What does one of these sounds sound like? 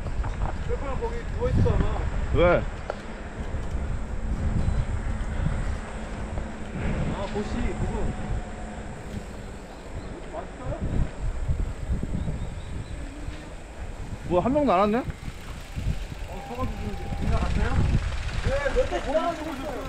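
Bicycle tyres roll on a paved road.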